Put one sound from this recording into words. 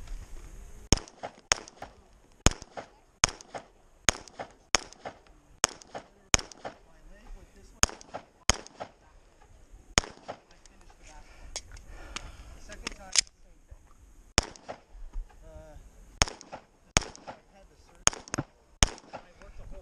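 A pistol fires shot after shot outdoors, sharp and loud.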